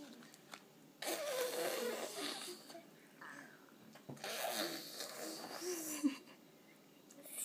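A toddler chews and smacks lips on food.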